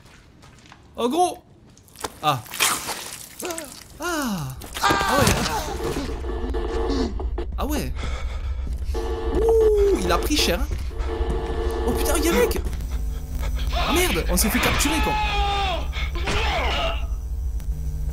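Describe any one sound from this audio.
A young man shouts and exclaims loudly close to a microphone.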